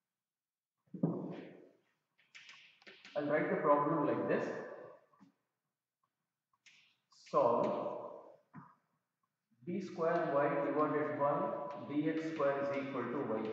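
An elderly man lectures calmly into a close microphone, with pauses.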